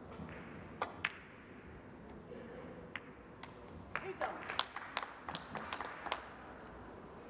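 Billiard balls click against each other several times.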